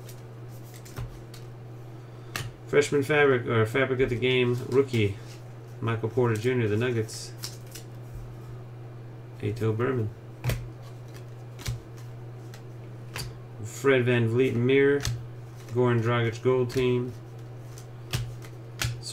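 Trading cards rustle and click as they are shuffled in hands.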